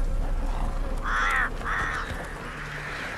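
A crow caws harshly nearby.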